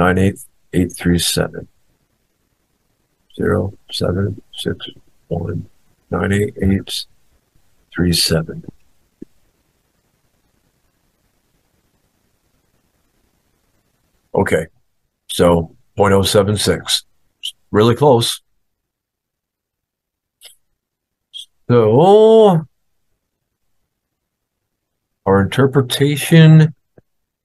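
A man talks calmly and closely into a microphone, in bursts with pauses.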